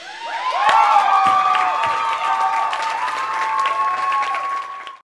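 Cymbals crash and drums are struck.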